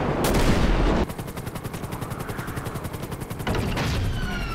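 A helicopter's rotor whirs and chops.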